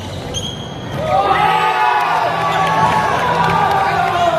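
Young players shout and cheer loudly in an echoing hall.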